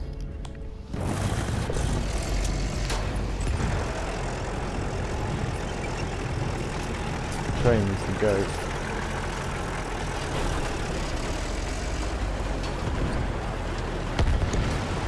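Tracks clank over rubble.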